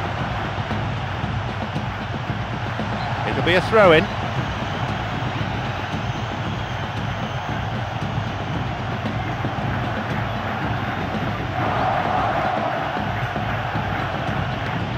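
A large stadium crowd roars and chants steadily in the distance.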